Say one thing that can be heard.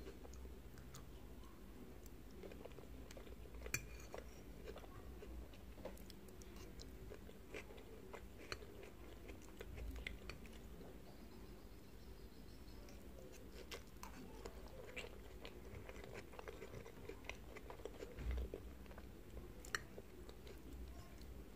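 A woman chews food wetly close to a microphone.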